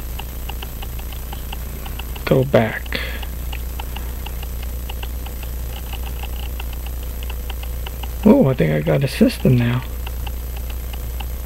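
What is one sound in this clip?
A pocket watch ticks rapidly and steadily up close.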